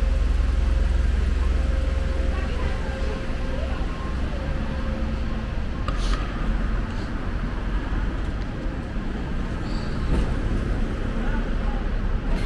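City traffic hums steadily along a street outdoors.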